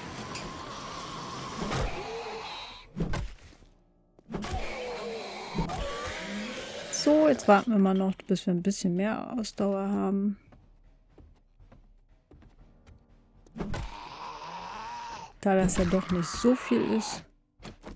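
A zombie growls and groans.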